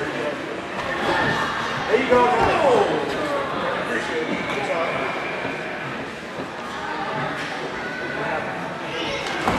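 Spectators shout and cheer.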